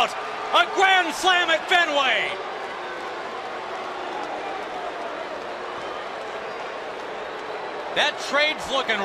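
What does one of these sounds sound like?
A large crowd cheers and murmurs in an open stadium.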